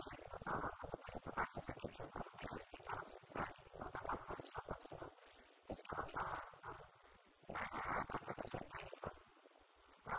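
A woman speaks calmly into a microphone, heard through a loudspeaker in an echoing room.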